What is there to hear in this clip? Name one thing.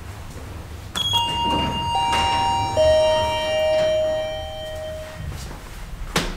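An elevator chime rings several bright tones.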